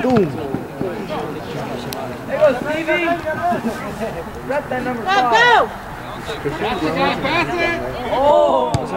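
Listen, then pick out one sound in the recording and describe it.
Adult spectators shout and call out close by, outdoors.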